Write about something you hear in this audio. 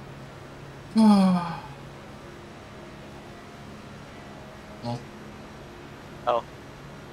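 A young man speaks in short bursts into a close microphone.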